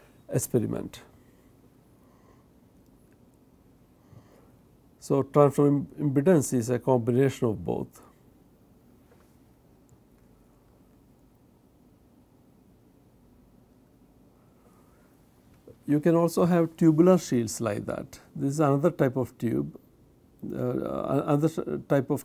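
An elderly man lectures calmly into a close microphone, with long pauses.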